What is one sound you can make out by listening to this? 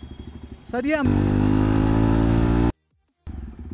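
A motorcycle engine revs loudly.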